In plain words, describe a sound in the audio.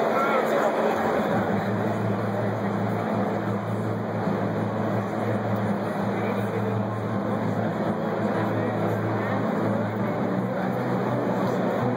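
A low droning music tone plays through loudspeakers in a large hall.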